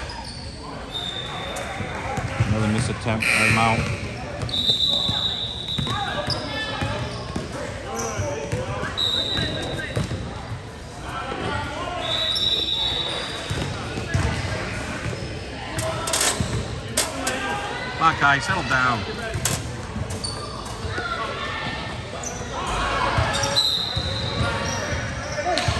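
Sneakers squeak sharply on a gym floor in a large echoing hall.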